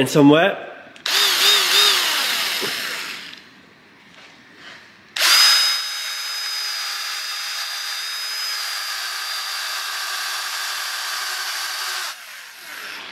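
A power polisher whirs steadily against a metal panel.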